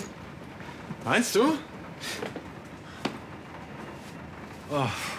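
A man groans and sighs in frustration nearby.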